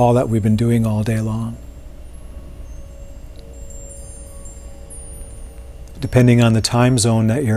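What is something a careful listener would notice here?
A man speaks calmly and slowly close to a microphone.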